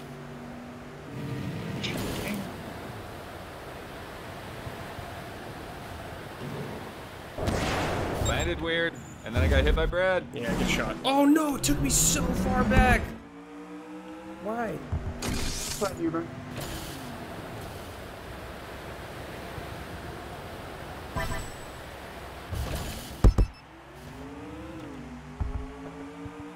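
A game car's engine hums and revs.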